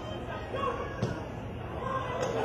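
A football is kicked hard on a field.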